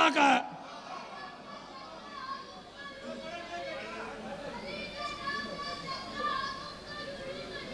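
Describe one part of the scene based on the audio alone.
A crowd of men murmurs and calls out.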